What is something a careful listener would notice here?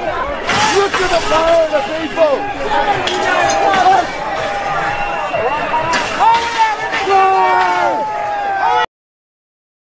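A crowd of men and women shouts loudly close by, outdoors.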